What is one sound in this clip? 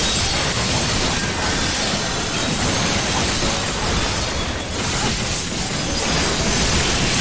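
Magic spells whoosh and crackle loudly in a fantasy battle.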